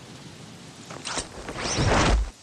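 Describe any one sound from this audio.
A parachute snaps open with a loud flapping rush.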